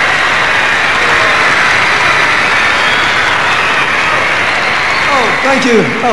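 A large crowd screams and shrieks loudly in a big echoing hall.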